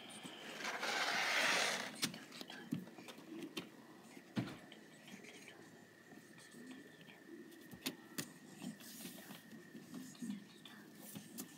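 A marker scratches softly across paper.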